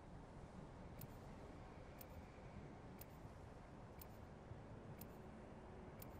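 A countdown timer beeps once each second.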